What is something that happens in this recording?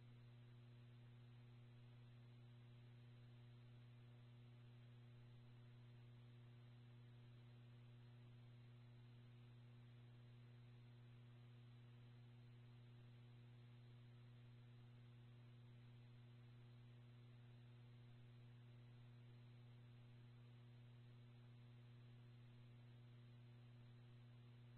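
A radio stream plays a steady low electrical hum.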